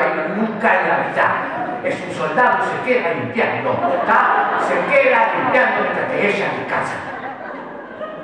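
A young man shouts animatedly into a headset microphone.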